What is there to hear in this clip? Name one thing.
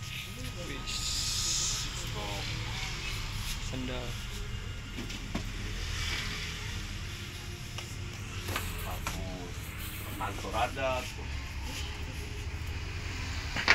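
Shoes knock and rustle as a man handles them.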